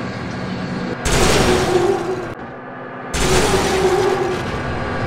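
A train crashes into a bus with a loud crunching smash.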